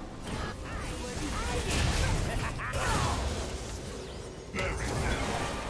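Blows and impacts thud in quick succession.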